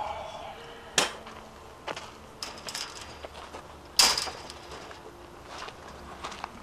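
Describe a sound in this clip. A chain-link fence rattles and clanks.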